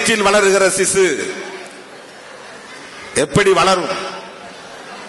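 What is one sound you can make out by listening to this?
A man speaks forcefully into a microphone over loudspeakers, with echo in a large open space.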